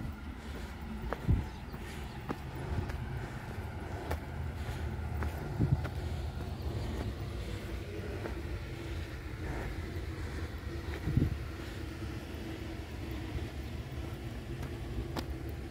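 Wind blows and rumbles outdoors in gusts.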